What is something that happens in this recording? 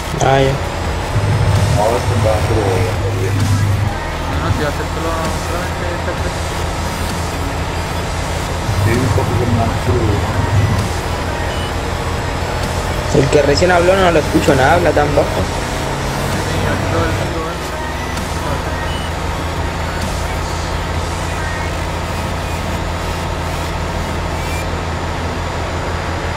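A truck engine drones steadily.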